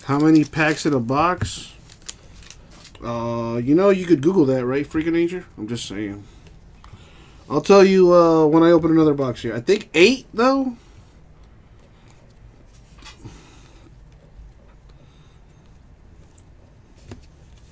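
Trading cards rustle and slide against each other as they are handled.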